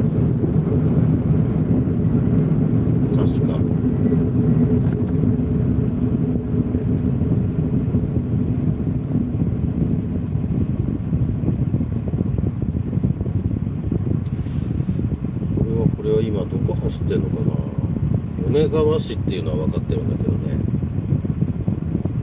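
A car engine rumbles steadily, heard from inside the car.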